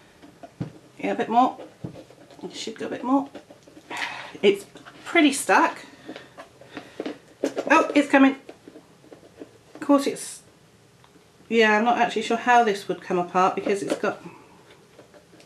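A middle-aged woman talks calmly and close by.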